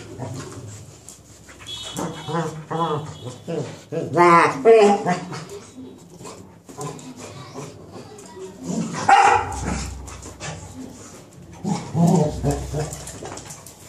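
Two dogs growl and whine as they play-fight.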